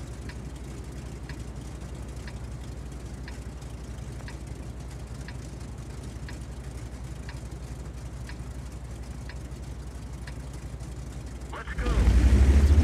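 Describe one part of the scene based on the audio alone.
A tank engine idles with a low rumble.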